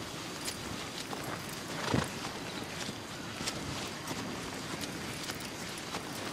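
A horse's hooves thud slowly on soft forest ground.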